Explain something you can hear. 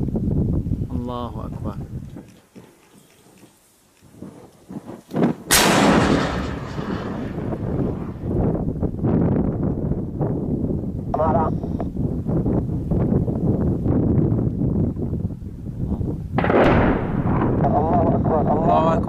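A shell explodes at a distance with a deep, rolling boom.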